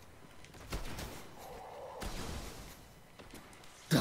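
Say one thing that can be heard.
Gunshots crack in a video game.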